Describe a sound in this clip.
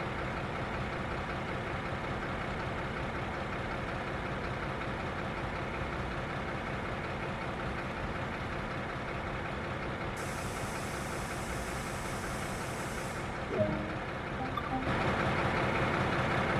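A diesel locomotive engine rumbles steadily.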